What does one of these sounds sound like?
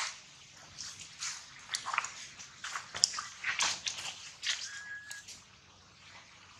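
Water splashes underfoot as a monkey wades through a shallow pool.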